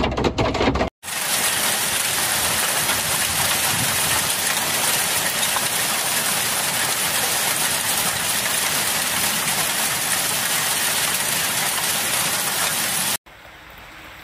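Hail patters loudly and steadily on leaves and netting outdoors.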